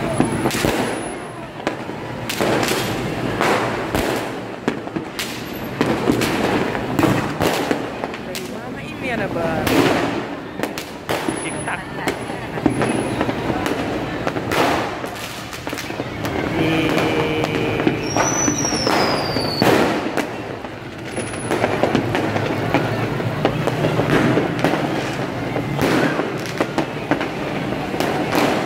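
Fireworks bang and crackle in the distance, again and again.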